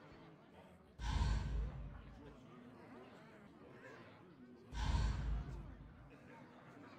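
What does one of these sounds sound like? A game menu plays a short whooshing swell.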